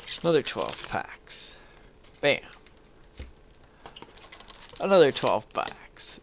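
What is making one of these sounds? A cardboard box flap rustles.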